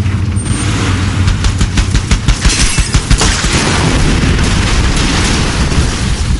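A mounted machine gun fires rapid bursts.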